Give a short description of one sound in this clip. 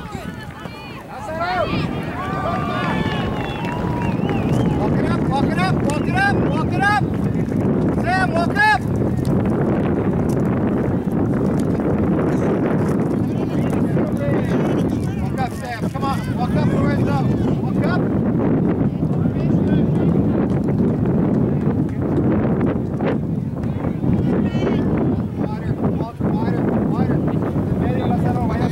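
Spectators on the sideline shout and cheer outdoors.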